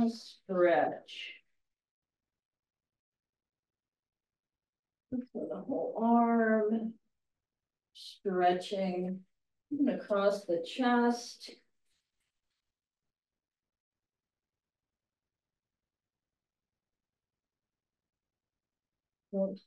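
An elderly woman speaks calmly and close by, in short bursts.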